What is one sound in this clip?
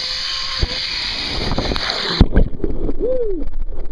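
Water splashes and churns close by.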